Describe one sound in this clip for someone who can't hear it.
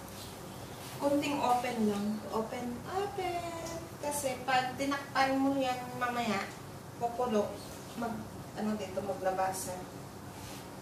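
A woman talks animatedly close by.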